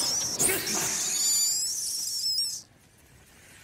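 A torch flame roars and crackles.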